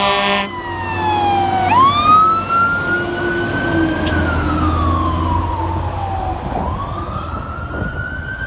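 A fire engine's diesel engine rumbles as it pulls away.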